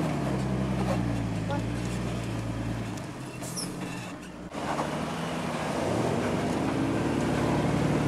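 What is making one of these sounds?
Tyres grind and crunch over rock.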